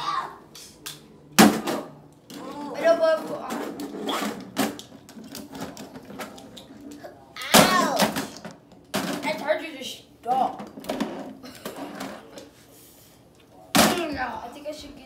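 Plastic toy figures clack against each other and a toy ring.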